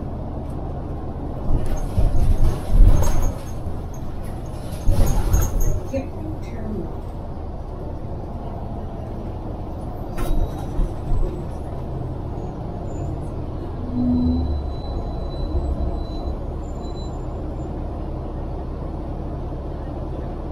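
Traffic rumbles steadily along a busy road outdoors.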